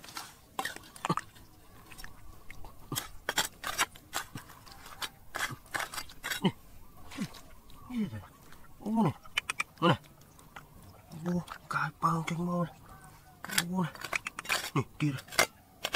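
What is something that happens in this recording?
A metal trowel scrapes and clinks against stones and earth.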